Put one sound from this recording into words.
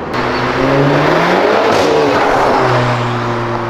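A motorcycle engine rumbles and passes close by.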